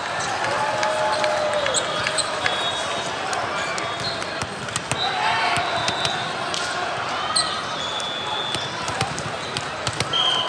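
Shoes squeak sharply on a hard court.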